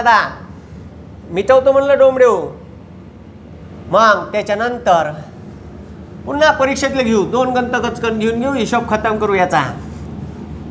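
A man speaks clearly and steadily, close by.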